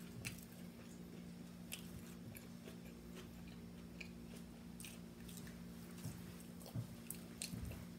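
Food crunches and clicks as fingers pick at it.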